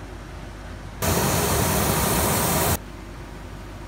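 A belt sander grinds loudly against a shoe sole.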